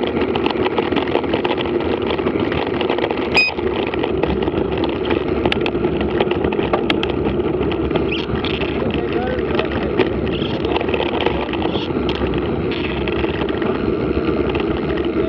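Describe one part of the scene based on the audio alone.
Bicycle tyres crunch and rattle over a gravel track.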